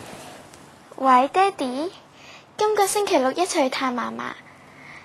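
A young girl talks cheerfully into a phone close by.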